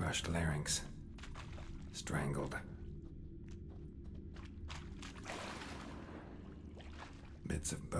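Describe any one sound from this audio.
A sword slashes and strikes a creature.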